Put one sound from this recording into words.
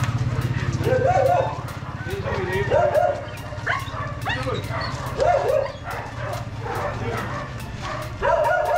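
A dog barks excitedly.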